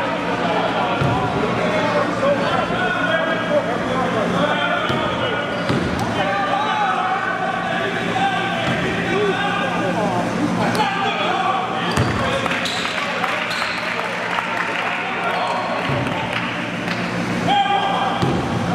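A basketball bounces on a hard floor with dull thuds.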